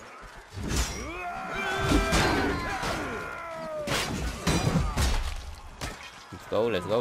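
Men shout and scream in battle.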